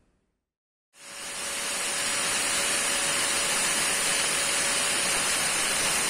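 An angle grinder whines loudly as it cuts through metal.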